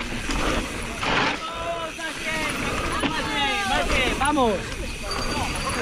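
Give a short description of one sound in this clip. Spectators shout and cheer close by as the bike passes.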